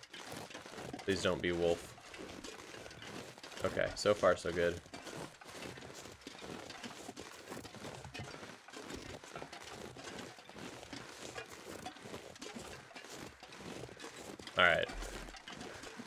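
A man speaks close to a microphone, in short calm bursts.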